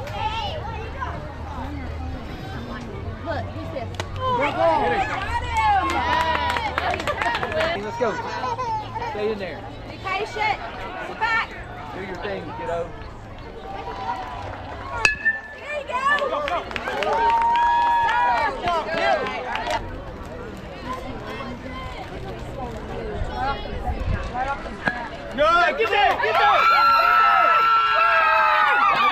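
Young girls shout and cheer with excitement outdoors.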